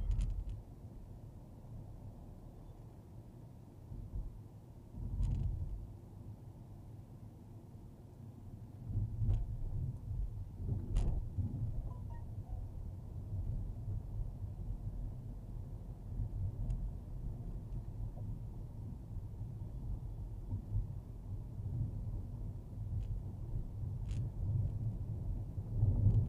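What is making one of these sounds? A car engine hums steadily from inside a car.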